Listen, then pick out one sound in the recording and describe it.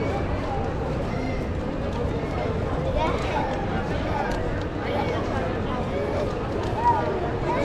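Footsteps shuffle on the pavement.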